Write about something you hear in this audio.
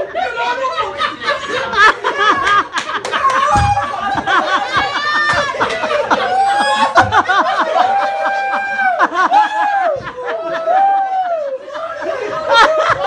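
Several men shout and laugh loudly close by.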